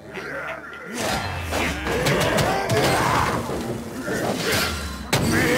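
Game combat effects crash and whoosh with heavy blasts.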